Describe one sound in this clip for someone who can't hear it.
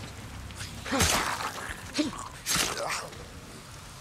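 Heavy blows land with loud thuds in a brief scuffle.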